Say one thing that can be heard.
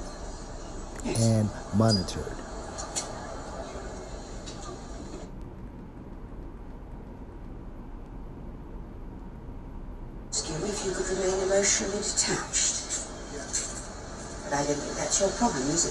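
An older woman speaks calmly through a small loudspeaker.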